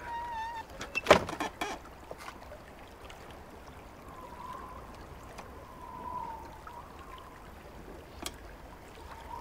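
A metal latch on a wooden door clicks and rattles.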